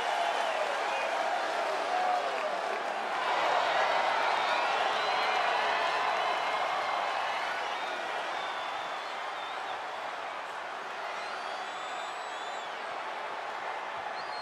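A large crowd cheers and roars loudly, echoing through a big arena.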